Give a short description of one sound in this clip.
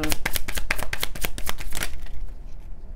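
Cards are shuffled with quick, rapid clicking.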